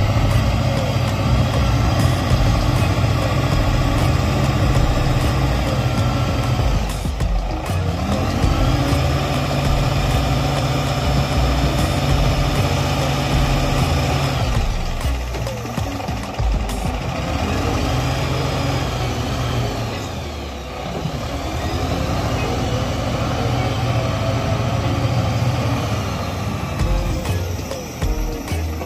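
A diesel engine of a wheel loader rumbles loudly close by, revving up and down.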